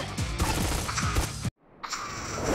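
Pistols fire in quick bursts.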